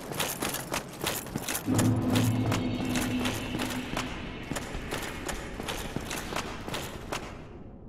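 Heavy armored footsteps clank steadily on stone.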